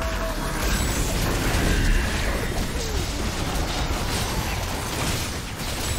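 Game spell effects crackle and boom as characters battle.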